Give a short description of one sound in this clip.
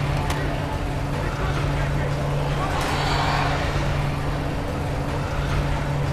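A heavy vehicle engine rumbles as it drives past.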